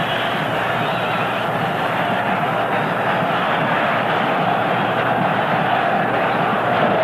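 A large stadium crowd cheers and roars steadily.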